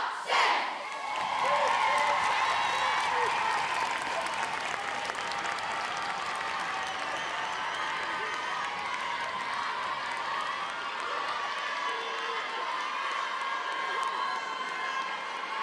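A large crowd cheers and applauds in an echoing hall.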